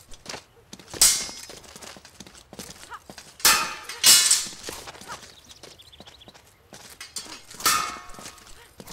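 Steel swords clash sharply now and then.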